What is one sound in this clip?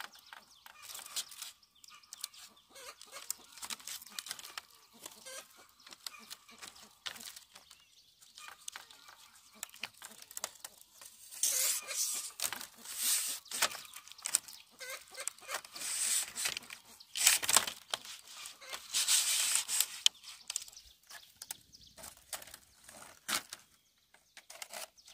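Split bamboo strips clatter and scrape as they are woven into a mat.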